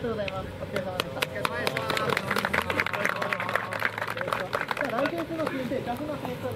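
A group of people clap their hands.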